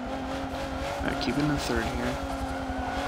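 Tyres squeal through a corner.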